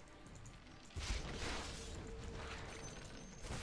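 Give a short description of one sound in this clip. Game spell effects whoosh and crackle in a burst.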